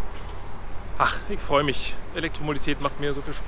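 A man speaks calmly and close to the microphone, outdoors.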